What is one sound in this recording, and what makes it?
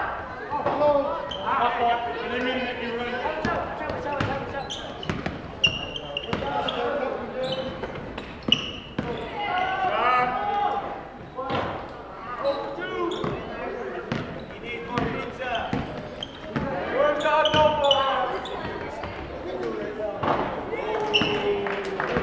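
Young players call out and shout across the court.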